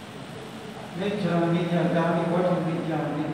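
A man speaks calmly in an echoing hall.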